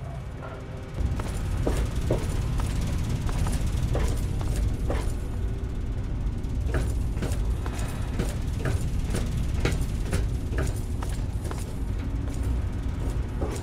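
Footsteps clank across a metal floor.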